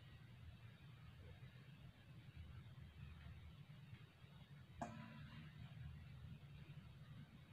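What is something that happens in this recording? Fabric rustles softly as bedding is handled.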